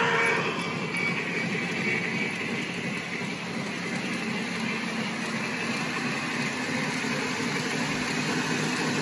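A model train rumbles and clatters steadily along its track close by.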